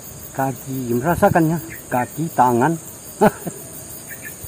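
A man speaks loudly with animation outdoors.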